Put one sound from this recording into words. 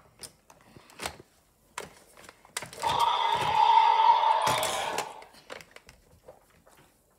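Plastic toy figures knock and clatter against each other.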